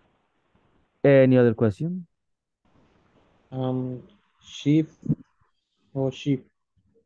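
A man speaks calmly in short phrases over an online call.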